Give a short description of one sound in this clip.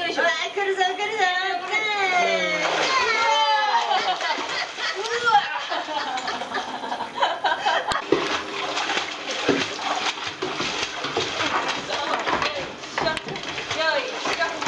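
Water splashes and sloshes as a dog paddles.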